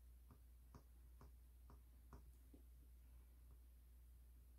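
A pen tip taps and scratches lightly on a hard glossy tile.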